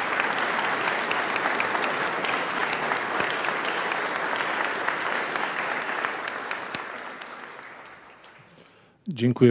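A crowd applauds, then the applause fades.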